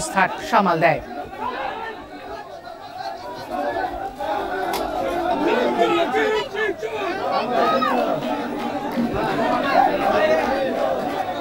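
A crowd of men shouts and clamours outdoors.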